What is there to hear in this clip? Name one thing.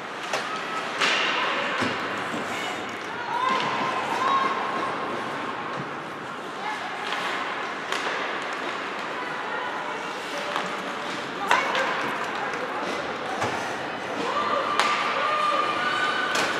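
Spectators and players shout and call out from around the rink.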